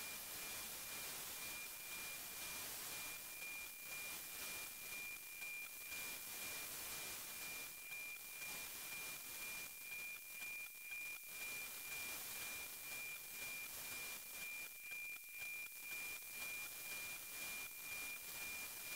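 A steady high tone sounds through radio static.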